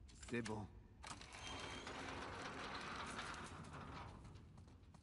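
A heavy door creaks open.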